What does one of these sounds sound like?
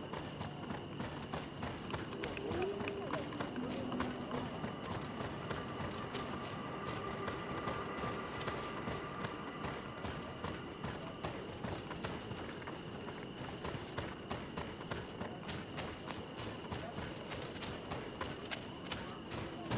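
Footsteps run quickly over gravel and grass.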